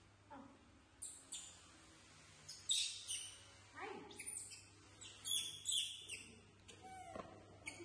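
A young monkey squeals and shrieks in high, sharp bursts.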